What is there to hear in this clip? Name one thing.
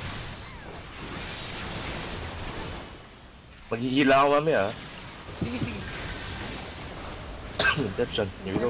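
Magic spell effects whoosh and chime during a fantasy battle.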